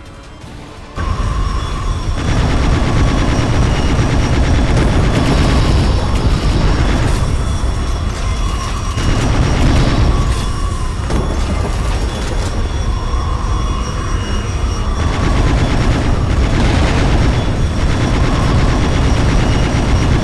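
A spacecraft engine roars steadily.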